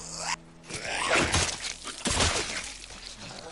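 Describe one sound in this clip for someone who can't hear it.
A heavy blow thuds against a body.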